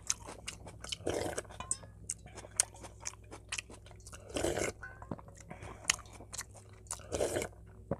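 A young man slurps soup loudly.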